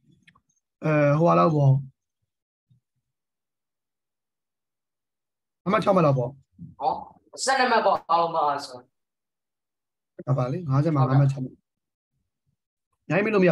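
A young man speaks calmly into a microphone, explaining in short phrases.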